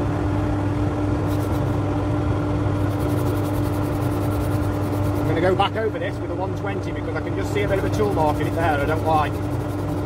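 Sandpaper rubs against spinning wood.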